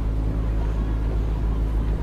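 Oars splash and dip in the water as a rowing crew pulls past.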